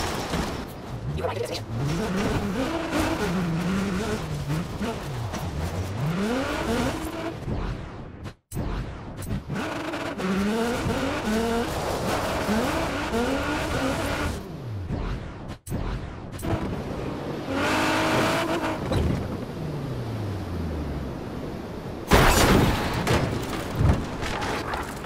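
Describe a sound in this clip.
A sports car engine revs and roars, rising and falling in pitch through gear changes.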